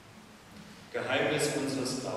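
A man begins to speak aloud in a large, echoing room.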